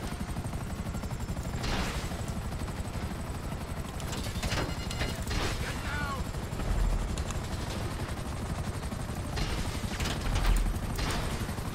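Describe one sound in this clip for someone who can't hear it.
Helicopter rotor blades chop rapidly and steadily.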